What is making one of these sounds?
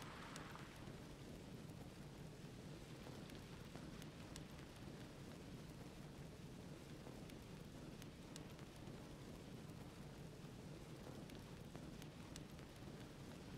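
Large wings flap in slow, steady beats.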